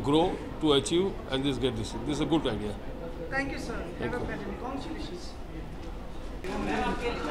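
An older man speaks calmly into microphones.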